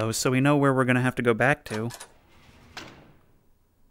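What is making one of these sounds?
A door handle clicks and a door swings open.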